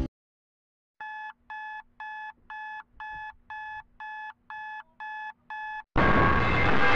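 An alarm clock beeps in quick, even bursts.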